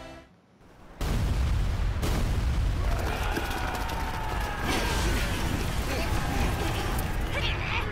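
Cannon blasts and explosions rumble loudly and heavily.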